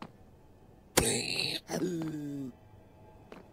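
A creature grunts angrily and squeals in pain.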